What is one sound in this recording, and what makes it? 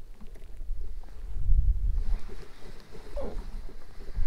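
A fishing lure clicks softly as hands handle it.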